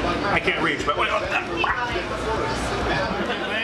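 A second man laughs close by.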